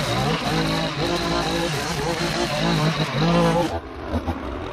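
A string trimmer engine idles with a high whine.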